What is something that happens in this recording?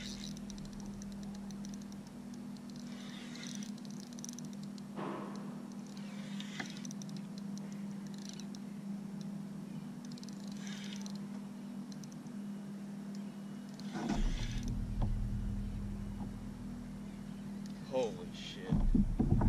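A fishing reel clicks and whirs as line is reeled in.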